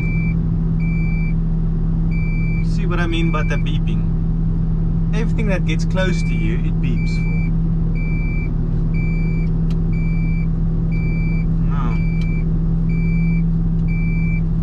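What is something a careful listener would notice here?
A bus engine idles with a steady low hum.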